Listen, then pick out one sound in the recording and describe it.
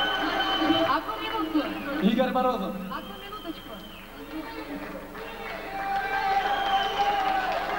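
A rock band plays loudly through big speakers in a large hall.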